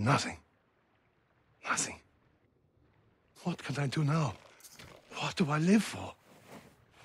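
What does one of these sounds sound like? A man speaks in a pleading, distressed voice.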